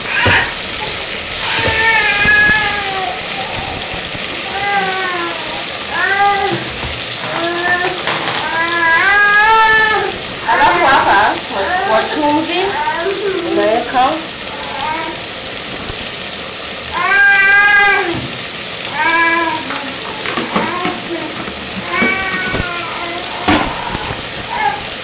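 A wooden spoon scrapes and stirs vegetables in a metal pot.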